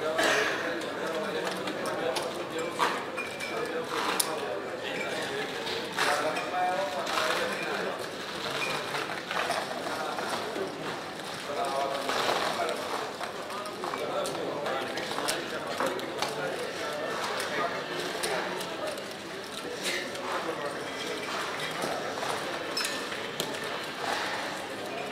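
Casino chips clack and clatter as they are stacked and moved across a table.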